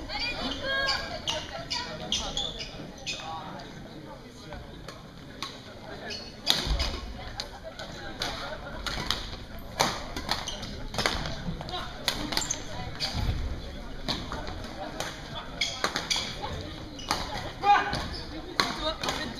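Sneakers squeak and thump on a hard court floor.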